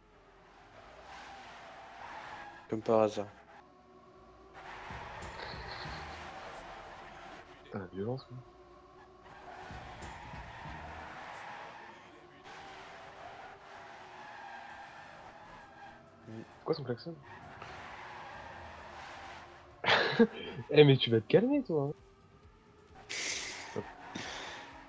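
A racing car engine drones and whines at high speed.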